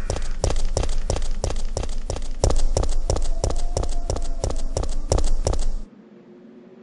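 Footsteps thud quickly and evenly on hard ground.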